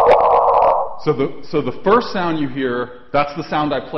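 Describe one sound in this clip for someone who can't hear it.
A man speaks to an audience through a microphone.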